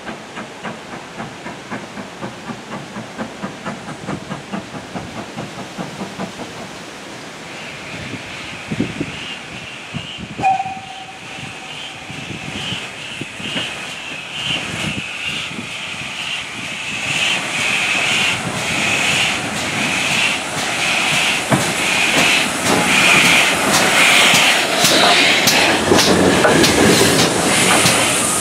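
A steam locomotive draws slowly closer, hissing and chuffing louder and louder.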